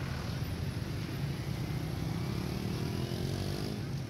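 Other motor scooters pass close by.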